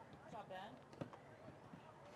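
A ball is kicked with a thump.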